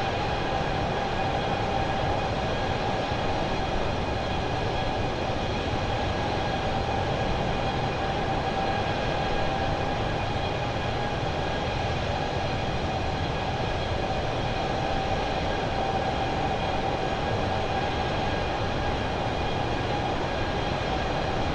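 A jet airliner's engines roar steadily in flight.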